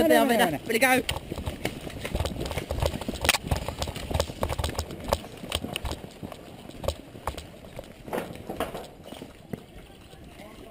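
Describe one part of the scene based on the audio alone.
Airsoft guns fire in quick snapping shots.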